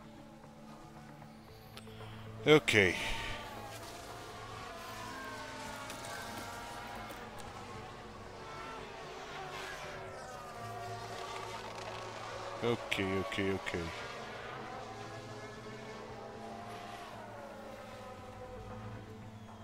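Racing car engines whine, rising and falling as they pass by.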